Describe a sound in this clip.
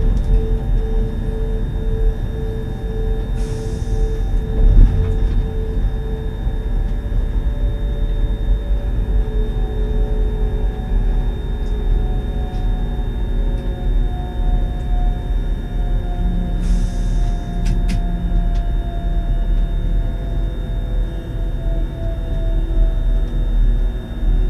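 A train's electric motor hums with a slowly shifting pitch.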